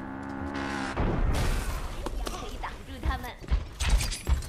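Metal throwing stars whoosh and thud in quick bursts.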